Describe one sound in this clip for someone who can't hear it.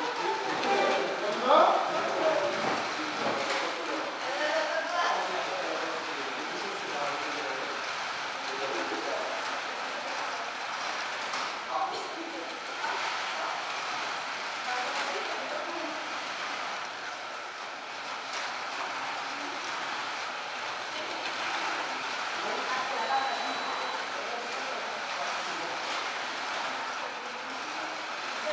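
Small toy cars whir steadily along slot tracks.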